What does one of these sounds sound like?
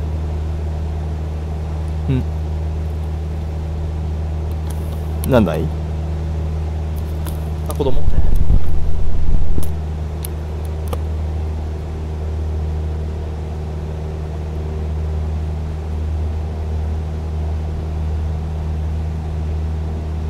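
A light plane's engine drones steadily.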